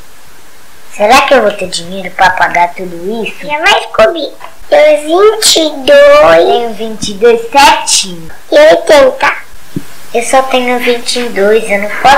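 A small girl answers in a cheerful voice.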